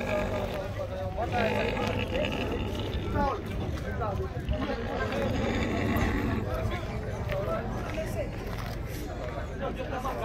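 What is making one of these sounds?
Pigs grunt and snuffle close by.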